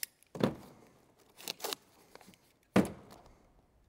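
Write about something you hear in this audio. Objects knock against a truck bed.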